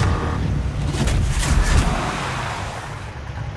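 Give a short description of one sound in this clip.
Tyres screech as a car skids.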